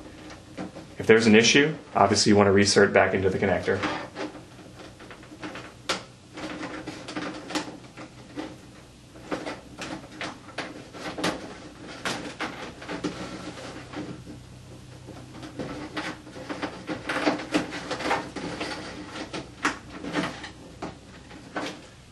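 Small plastic connectors click and tap against a metal panel.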